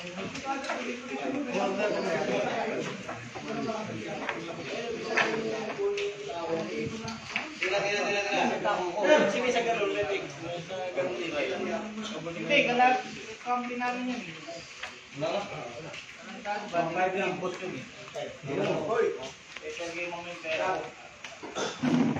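Men talk and chatter nearby.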